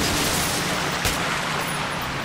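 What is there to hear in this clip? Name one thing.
A gun fires a single loud shot.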